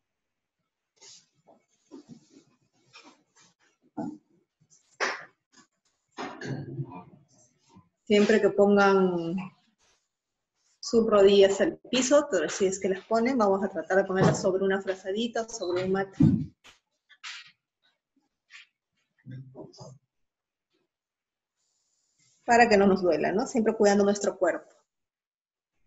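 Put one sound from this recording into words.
A woman speaks calmly and close to a microphone, with pauses.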